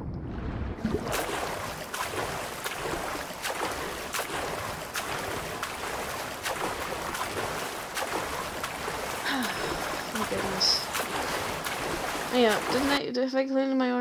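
Water splashes with steady swimming strokes.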